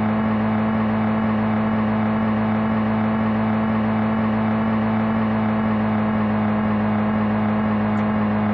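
A car engine hums steadily at a constant pitch.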